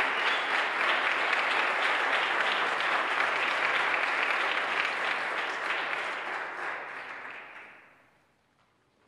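Timpani rumble in a loud roll that echoes through a large hall and fades away.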